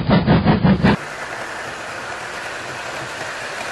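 A model train rolls along its track with a soft hum.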